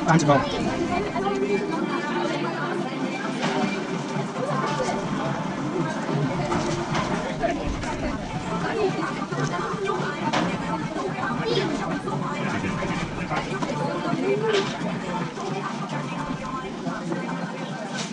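Paper wrappers rustle and crinkle.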